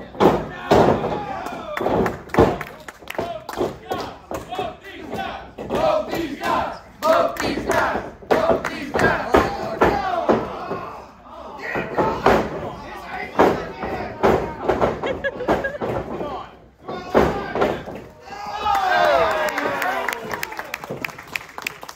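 Bodies slam onto a wrestling ring mat with loud thuds.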